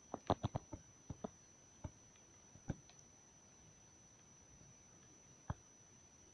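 Short knocks of blocks being dug come in quick bursts.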